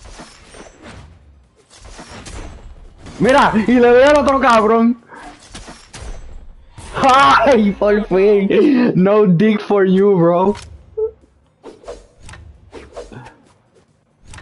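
Swords swish and blows land with sharp, punchy hits in quick succession.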